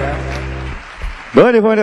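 A band plays a sustained chord that cuts off.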